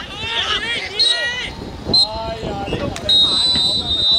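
Young men shout across an outdoor football pitch.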